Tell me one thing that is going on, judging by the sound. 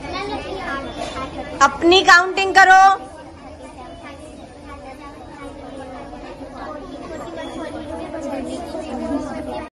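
Children chatter and call out outdoors.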